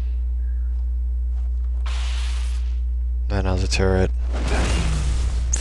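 An explosion bursts nearby.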